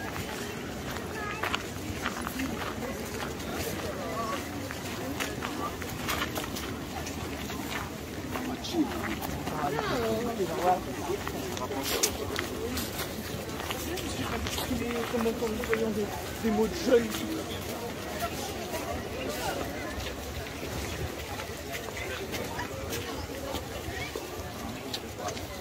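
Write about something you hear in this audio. Many people talk in the distance outdoors.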